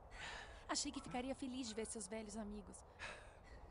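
A young woman speaks cheerfully up close.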